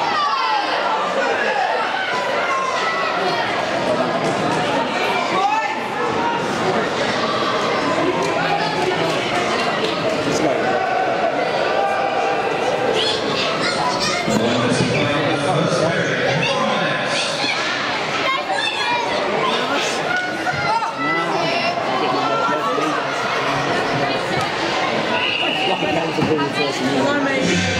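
Spectators shout and cheer in an echoing rink.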